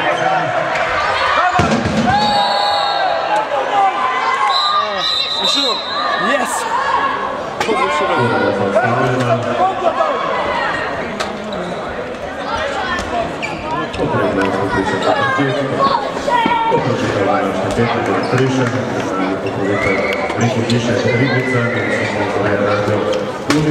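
A crowd of spectators talks and calls out in a large echoing hall.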